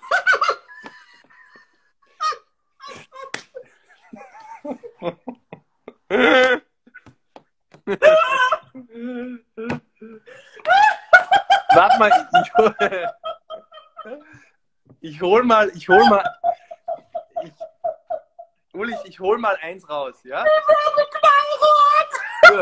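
A woman laughs loudly over an online call.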